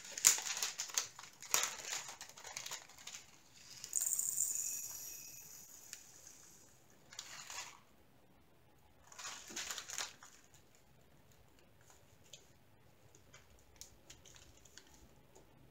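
Plastic packaging crinkles and rustles between fingers.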